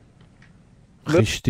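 A man speaks loudly and close into a microphone.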